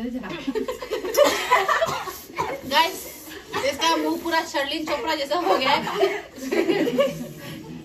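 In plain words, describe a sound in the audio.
Several young women laugh loudly.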